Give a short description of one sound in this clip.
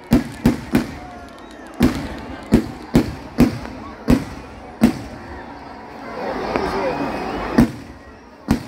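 A large crowd cheers and shouts.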